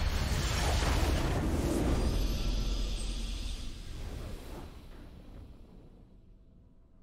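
A triumphant game fanfare swells loudly and fades away.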